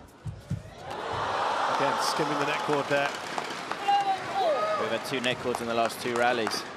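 A crowd cheers and applauds loudly in a large hall.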